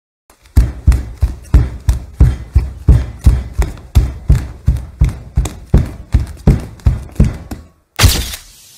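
Heavy footsteps thud quickly in a steady running rhythm.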